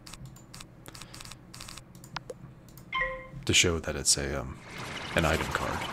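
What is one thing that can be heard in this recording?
Magical spell effects shimmer and chime.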